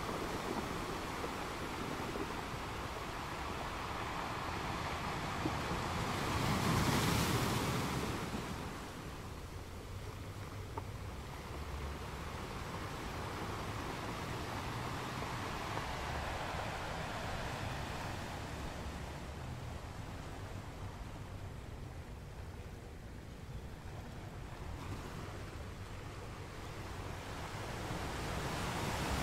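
Ocean waves crash and roar steadily against rocks outdoors.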